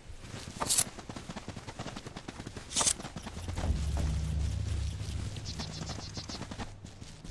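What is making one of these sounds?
Quick light footsteps patter along a dirt path.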